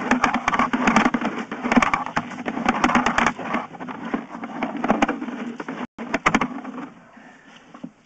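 Water rushes and splashes loudly through a pipe.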